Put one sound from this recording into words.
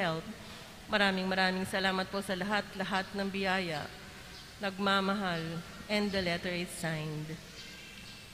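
A young woman reads aloud into a microphone in an echoing hall.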